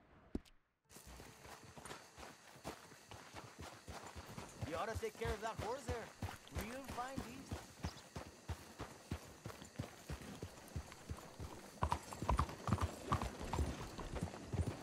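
A horse's hooves clop steadily on a road.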